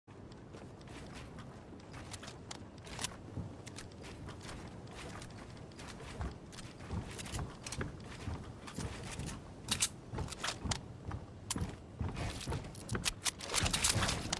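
Building pieces snap into place with quick, repeated clacks.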